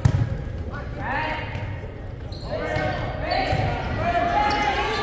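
Young players call out to each other in a large echoing gym.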